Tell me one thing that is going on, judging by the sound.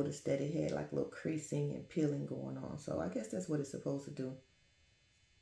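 A young woman speaks calmly and close to the microphone.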